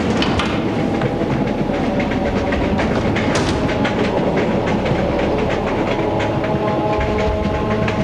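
A train rattles and clatters along the tracks.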